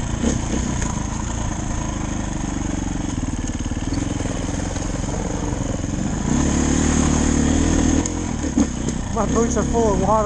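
A motorbike engine hums steadily and revs up.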